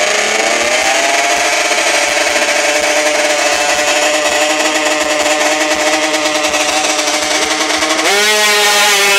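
A motorcycle engine revs high and steady close by.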